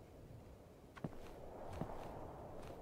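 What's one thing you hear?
A small figure lands on a ledge with soft thuds.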